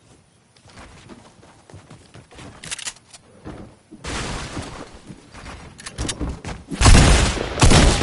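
Wooden walls clatter as they are built in a game.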